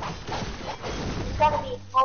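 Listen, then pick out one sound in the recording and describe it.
An explosion booms and debris crackles.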